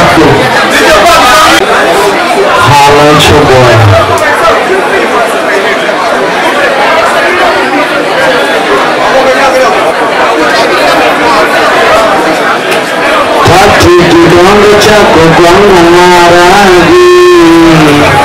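A crowd of young men and women chatter loudly all around, close by.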